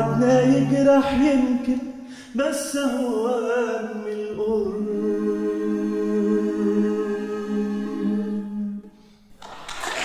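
A man sings into a microphone.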